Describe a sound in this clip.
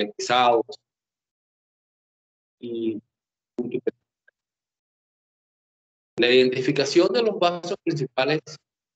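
An elderly man speaks calmly through an online call, in short bursts with pauses.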